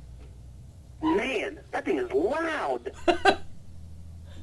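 A teenage boy laughs.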